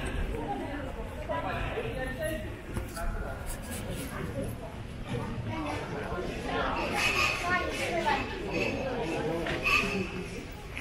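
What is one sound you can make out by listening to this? A crowd of men and women chatter nearby in an open outdoor space.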